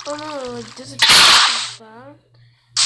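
Water splashes as a bucket is poured out.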